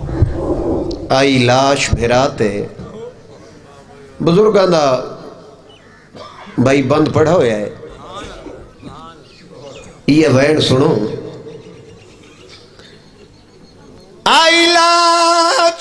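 A man chants loudly into a microphone over loudspeakers, in long drawn-out bursts.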